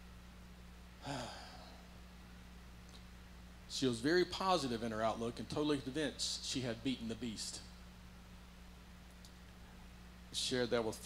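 An elderly man speaks slowly and solemnly through a microphone in a large echoing hall.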